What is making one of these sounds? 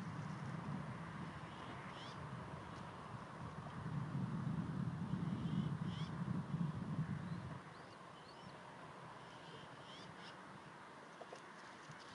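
An eagle flaps its wings briefly, close by.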